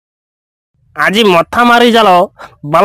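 A man speaks loudly with animation.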